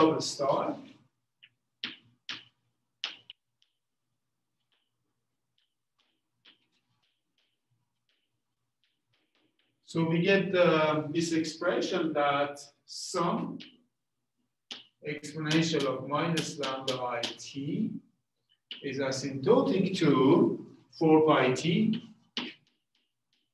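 A middle-aged man lectures calmly.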